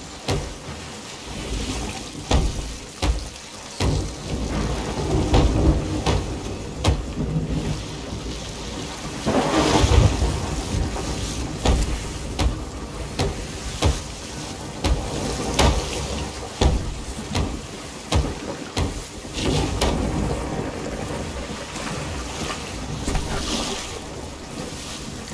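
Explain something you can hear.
Wooden planks knock and thud sharply.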